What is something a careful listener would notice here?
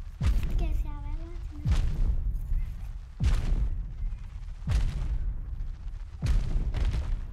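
A giant creature's heavy footsteps boom in slow, even thuds.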